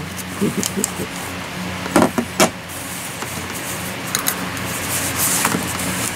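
Paper rustles and crinkles in a woman's hands.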